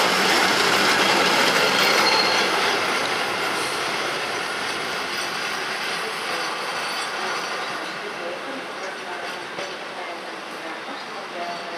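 An old electric train rumbles past close by and fades as it rolls away.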